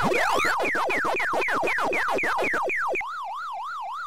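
Quick falling electronic blips play in a fast run.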